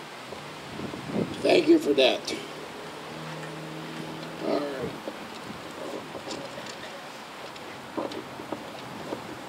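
An elderly man speaks calmly into a microphone outdoors.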